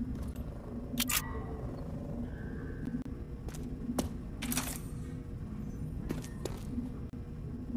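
Short bright chimes ring out as items are picked up.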